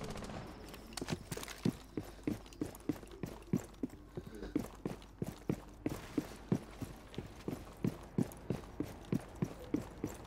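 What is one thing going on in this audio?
Footsteps thud quickly and steadily on a wooden floor.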